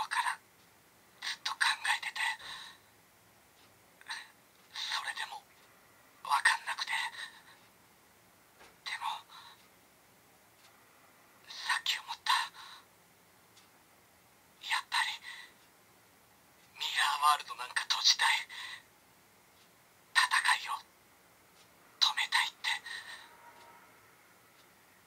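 A toy belt plays short recorded voice calls through a small, tinny speaker, again and again with pauses between.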